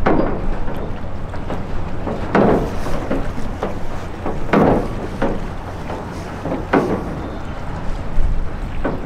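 Choppy waves splash and lap against each other.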